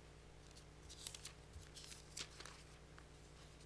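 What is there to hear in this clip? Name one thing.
Paper pages rustle as they turn.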